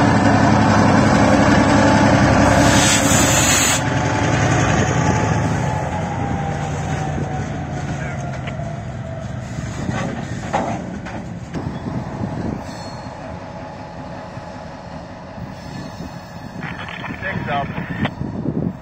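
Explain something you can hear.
A diesel locomotive engine rumbles loudly close by, then fades.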